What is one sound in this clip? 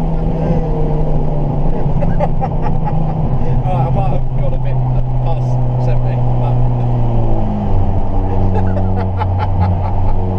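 A car engine hums steadily inside the cabin and changes pitch as it shifts.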